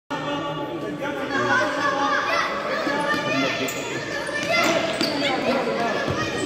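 Young children shout and call out in a large echoing gym.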